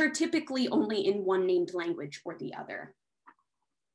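A young man speaks calmly through a computer microphone, as on an online call.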